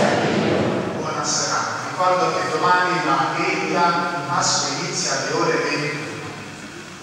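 Men chant together in an echoing hall.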